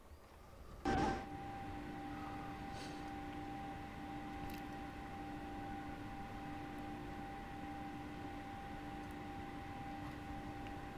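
An electric train's motor hums steadily from inside the cab.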